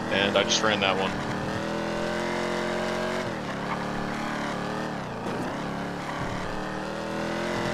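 A car engine hums steadily and rises and falls in pitch as the car drives.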